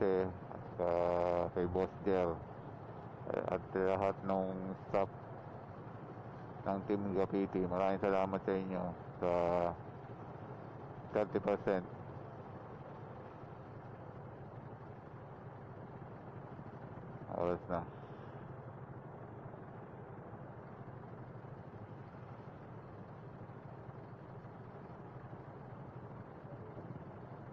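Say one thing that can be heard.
Motorcycle engines idle nearby.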